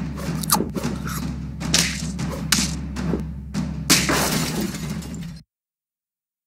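Cartoon battle sound effects thump and clash in quick bursts.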